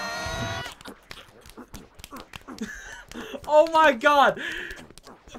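A young man laughs loudly and close by.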